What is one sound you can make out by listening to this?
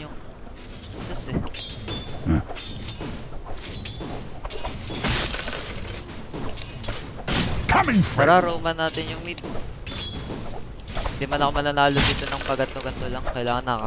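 Fighters clash with sharp hits and magical bursts in a game battle.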